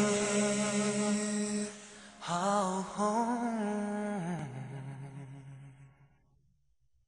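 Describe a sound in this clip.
A young man sings softly into a microphone.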